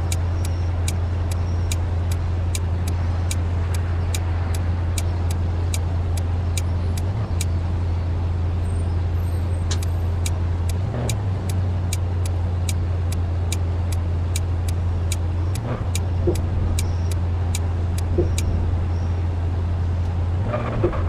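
A car engine hums steadily at low revs.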